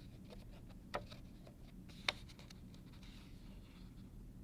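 A page of a book rustles as it is lifted.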